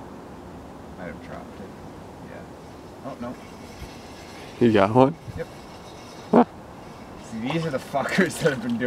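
A man speaks nearby in a calm, lively voice.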